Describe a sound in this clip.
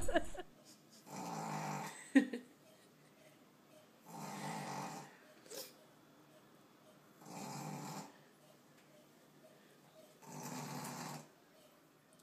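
A cat snores loudly in slow, regular breaths.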